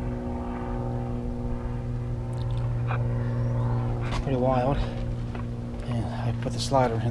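A vehicle engine idles with a steady low hum.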